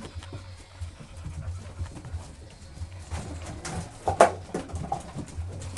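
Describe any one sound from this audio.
Puppies scamper and scuffle on a hard floor.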